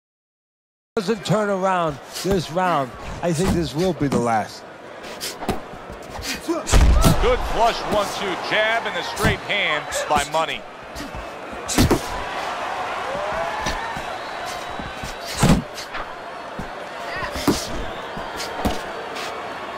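A large crowd cheers and murmurs in an arena.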